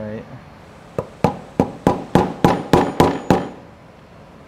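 A small tool clicks repeatedly against a metal part.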